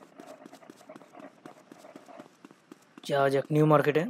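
Footsteps run quickly on a hard surface.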